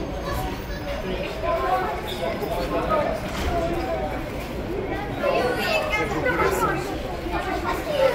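A crowd of children chatter close by, overlapping one another.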